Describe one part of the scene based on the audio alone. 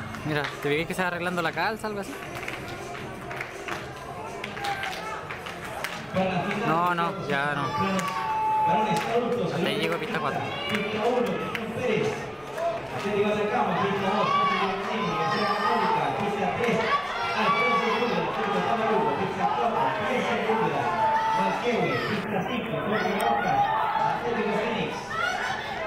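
Spectators nearby shout and cheer in open air.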